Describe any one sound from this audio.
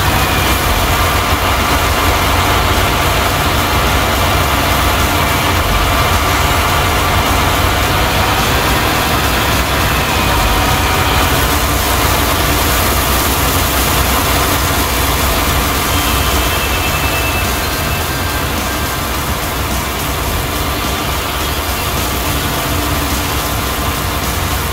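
A harvester engine roars steadily while cutting crops.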